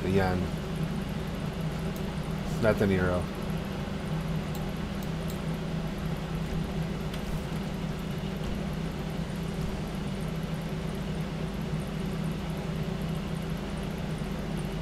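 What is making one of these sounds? A car engine idles with a steady low rumble.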